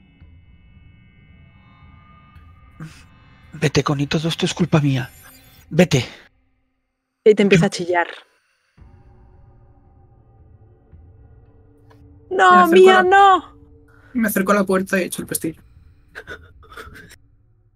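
A man talks and laughs over an online call.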